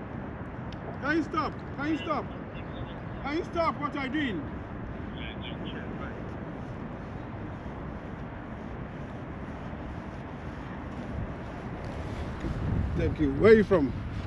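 A man speaks cheerfully, close by, outdoors.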